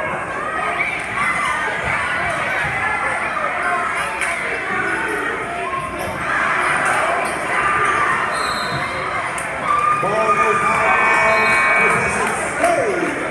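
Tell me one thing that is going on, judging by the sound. A crowd chatters and shouts throughout a large echoing gym.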